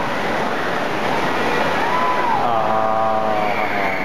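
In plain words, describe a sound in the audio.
A young girl splashes into a pool.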